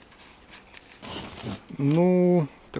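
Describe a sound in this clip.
A cardboard box of items rustles and thumps as it is handled.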